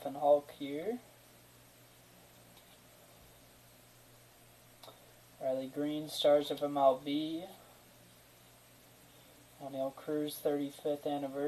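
Trading cards rustle and slide softly as they are flipped through by hand.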